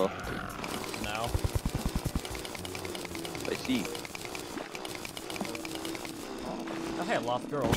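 A drill chips at rock with quick, repeated ticks.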